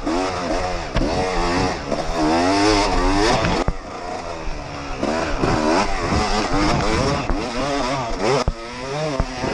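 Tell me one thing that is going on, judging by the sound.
A dirt bike's suspension thumps sharply over bumps.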